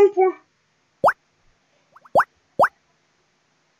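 Short rising electronic blips sound from a game.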